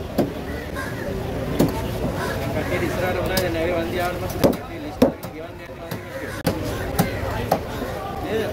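A heavy blade chops into fish on a wooden board with sharp thuds.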